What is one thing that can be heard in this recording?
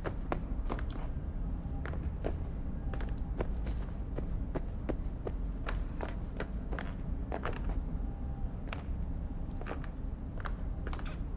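Footsteps tap on a hard floor at a steady walking pace.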